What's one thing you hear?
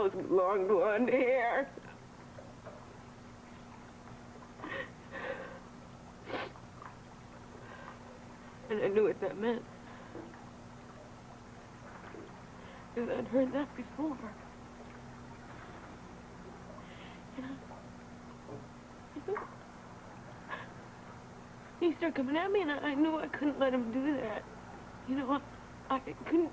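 A young woman speaks in a shaky, tearful voice close by.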